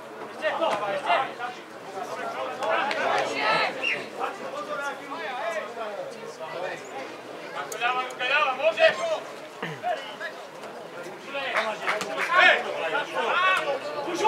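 Men shout to each other across an open field, outdoors.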